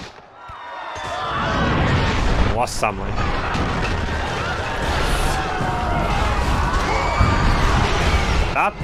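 Game fighting sounds clash and thud loudly.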